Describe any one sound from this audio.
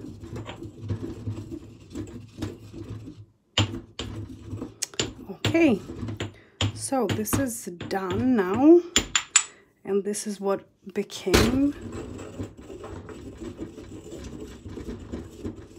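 A stone pestle grinds dry spices in a stone mortar with a gritty scraping.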